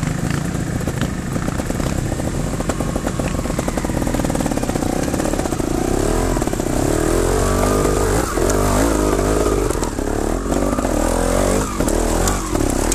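A dirt bike engine runs close by, revving up and down.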